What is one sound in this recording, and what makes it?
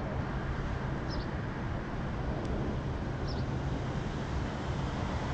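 Wind rumbles and buffets steadily against the microphone outdoors.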